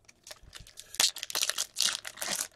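A foil pack crinkles and tears open.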